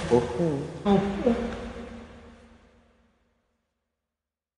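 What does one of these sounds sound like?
A woman sings into a microphone, with echo.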